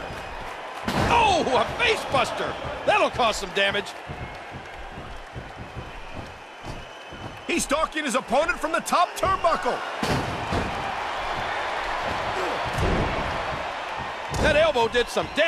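Heavy thuds sound as bodies slam onto a wrestling mat.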